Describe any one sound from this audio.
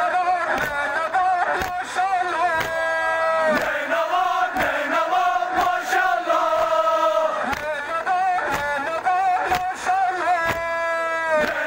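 A man chants a mournful lament through a loudspeaker.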